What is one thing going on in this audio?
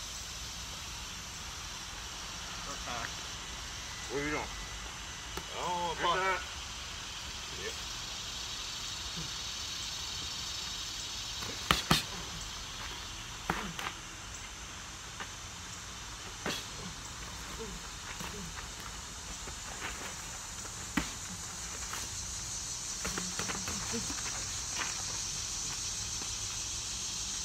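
Sneakers scuff and shuffle on dry dirt.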